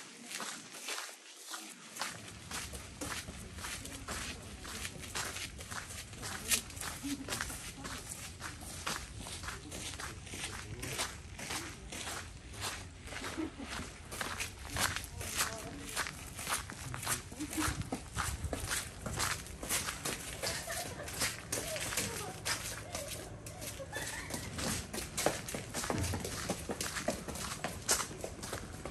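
Footsteps crunch and tap steadily on a path outdoors.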